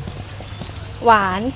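A young woman speaks up nearby.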